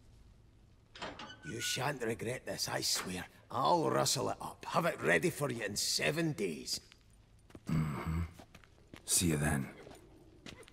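A man speaks eagerly and quickly.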